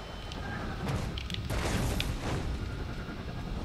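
A heavy thud sounds as a figure lands on the ground.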